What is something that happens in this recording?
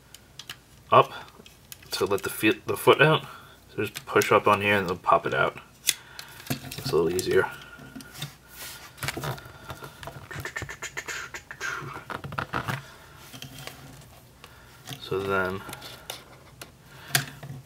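Plastic toy parts click and rattle as they are handled.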